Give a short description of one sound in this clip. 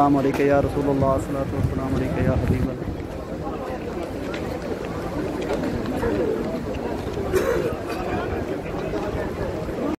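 A crowd murmurs and chatters around, outdoors.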